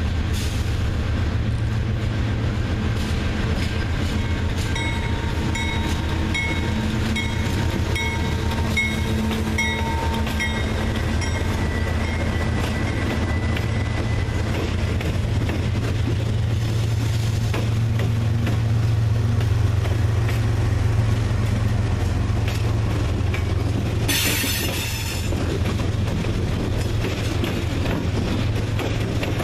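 Diesel locomotive engines rumble loudly as a freight train passes close by.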